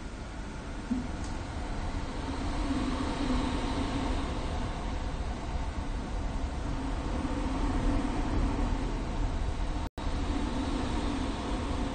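A train rumbles past close by on the next track, growing louder.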